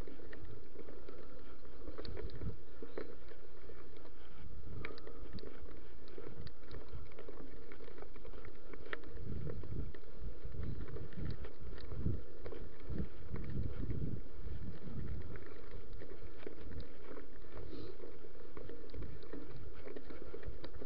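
Bicycle tyres crunch and rattle over a gravel trail.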